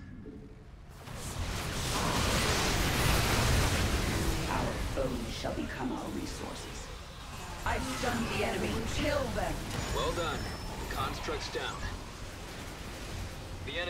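Laser blasts and explosions rattle in a loud battle.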